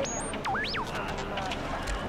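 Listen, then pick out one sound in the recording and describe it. A small robot beeps and chirps.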